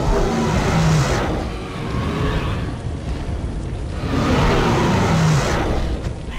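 A large dinosaur roars loudly and growls.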